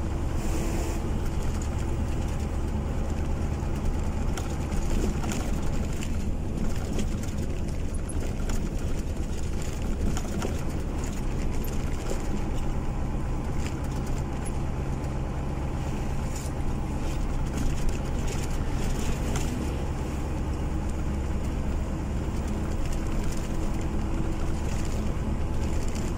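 A vehicle engine hums steadily from inside the cab while driving.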